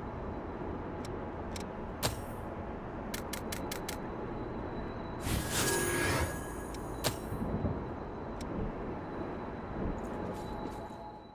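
Short menu clicks tick several times.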